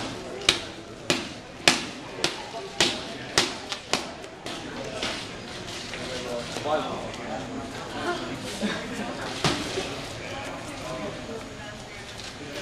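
A crowd murmurs and chatters nearby in a large echoing room.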